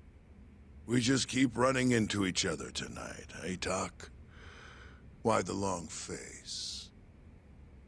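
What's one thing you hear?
A man speaks in a low, teasing voice.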